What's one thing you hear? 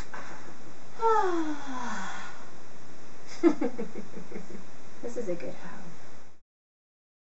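A second woman talks and laughs with animation close by.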